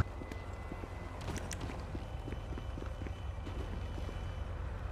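Footsteps run quickly across pavement.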